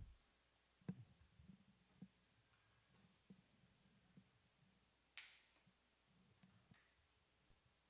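Metal vessels clink softly on a table.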